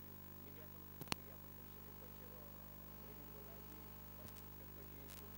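A stick strikes porcelain bowls with sharp, ringing clinks.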